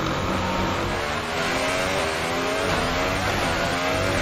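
A Formula One car's turbocharged V6 engine rises in pitch as it accelerates through the gears.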